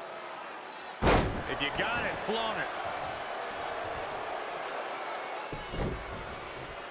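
A body thuds heavily onto a wrestling mat.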